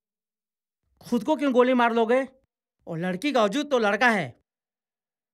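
A middle-aged man answers in a pleading, earnest voice up close.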